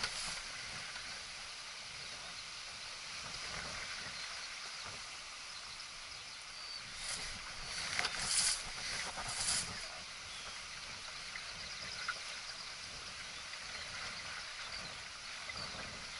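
Water splashes and laps against the hull of a moving boat.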